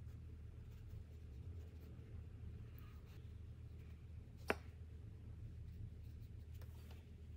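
A paintbrush strokes softly on paper.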